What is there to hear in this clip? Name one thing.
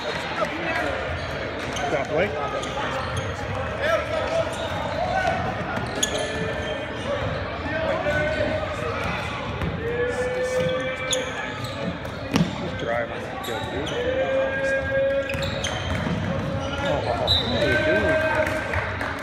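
Basketball sneakers squeak on a hardwood court in a large echoing hall.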